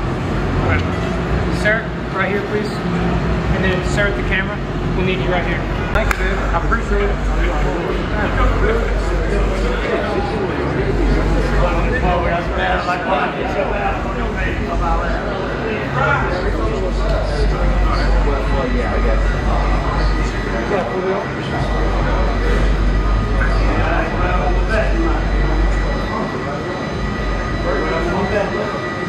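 Several men talk with animation close by, in a large echoing space.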